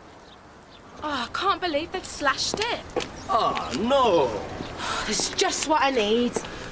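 A woman speaks anxiously nearby.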